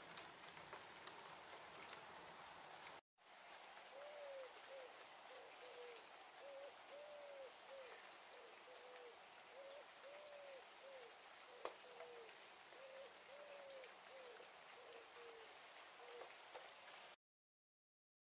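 Wind rustles through tree leaves outdoors.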